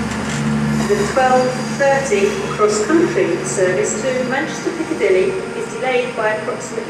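A departing diesel train's wheels squeal on curving rails.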